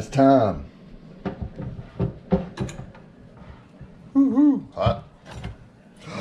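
A metal lid clanks as it is lifted open.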